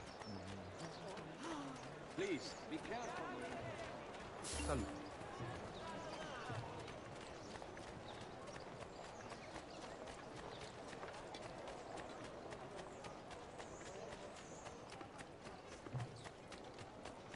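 Quick footsteps run on stone.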